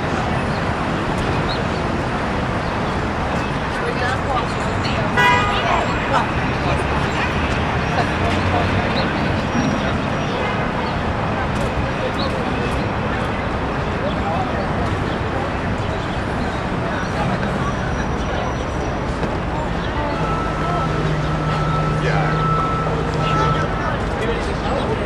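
City traffic rumbles steadily all around.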